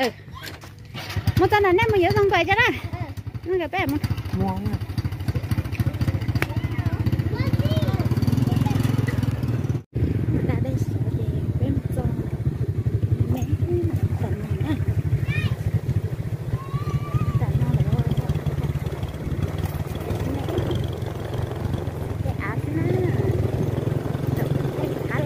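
A motorbike engine runs with a steady low hum.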